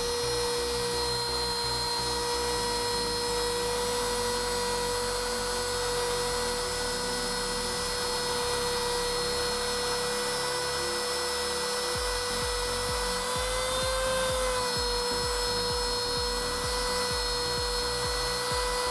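A router whines loudly and steadily as it cuts wood.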